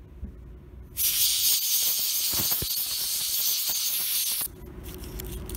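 Compressed air sprays with a loud, steady hiss.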